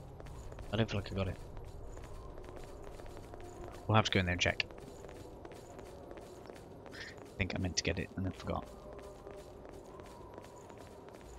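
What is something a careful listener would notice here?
Quick footsteps run across stone.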